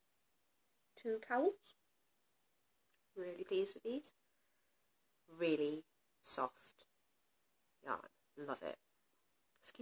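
A young woman speaks calmly and closely into a microphone, in short phrases with pauses.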